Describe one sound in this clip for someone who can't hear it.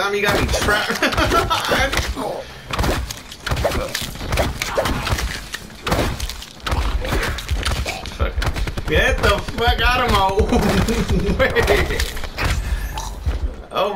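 Fists thud heavily against bodies in quick blows.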